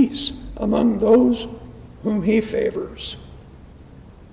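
An elderly man reads aloud through a microphone in a large echoing hall.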